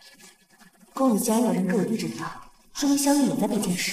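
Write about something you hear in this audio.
A young woman speaks softly and calmly, close by.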